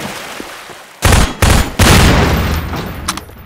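A gun fires several loud, booming shots in quick bursts.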